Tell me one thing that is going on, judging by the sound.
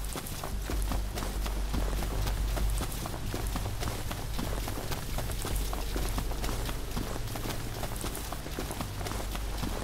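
Footsteps run quickly through rustling grass and leaves.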